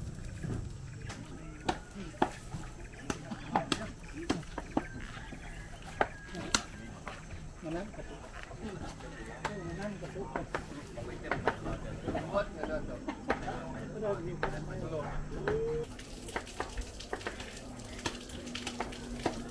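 Knives chop and knock on a cutting board.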